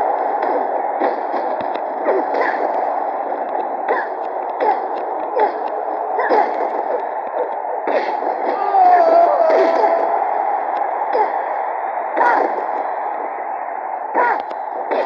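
Bodies thud hard onto a wrestling mat.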